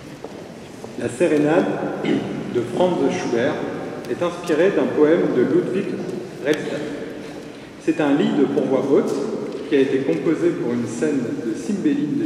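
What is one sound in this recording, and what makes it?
A young man speaks into a microphone through a loudspeaker in an echoing hall.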